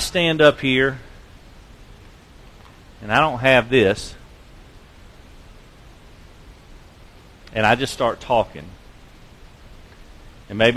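A man preaches through a microphone and loudspeakers in a large echoing hall, speaking in short emphatic bursts with pauses.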